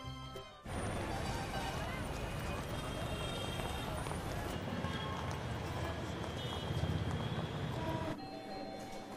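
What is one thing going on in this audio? A busy crowd bustles and murmurs outdoors.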